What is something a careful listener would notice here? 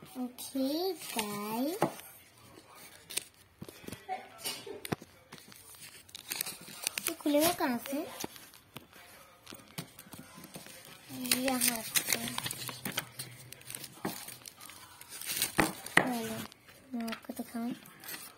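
Foil wrapping crinkles and rustles as hands handle a package.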